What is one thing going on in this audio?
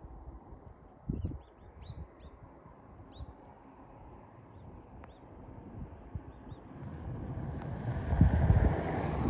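Wind blows steadily outdoors with rumbling gusts.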